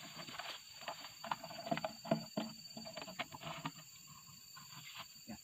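A large plastic jug knocks and thumps as it is handled.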